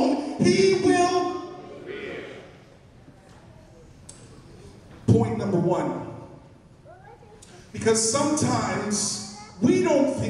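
A man preaches with animation into a microphone, his voice echoing in a large hall.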